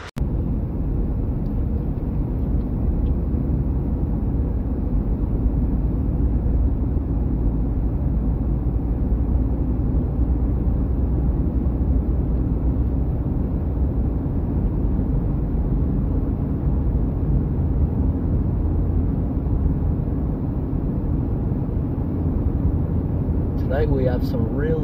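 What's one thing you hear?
A car engine hums steadily with the rumble of tyres on the road.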